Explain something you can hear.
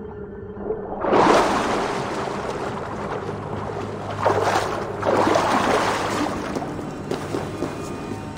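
Water splashes and churns as a swimmer surfaces.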